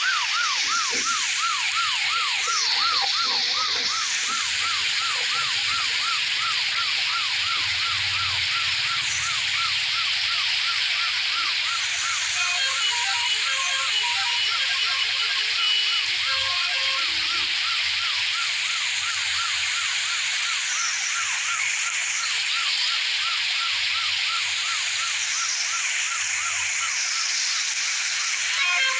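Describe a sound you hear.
Heavy rain pours steadily.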